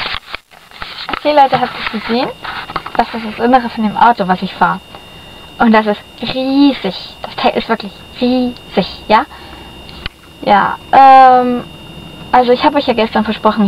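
A girl talks close to a microphone with animation.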